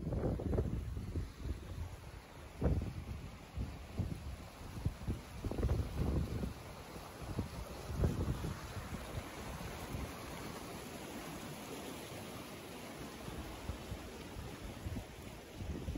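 A fast river rushes over stones nearby.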